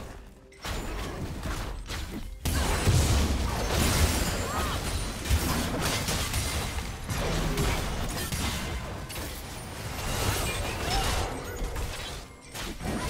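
Magical blasts and sword hits crash in a fast fight.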